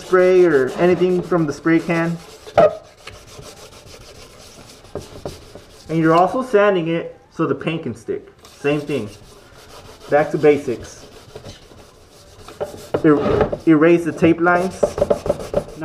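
Sandpaper rasps against a plastic part.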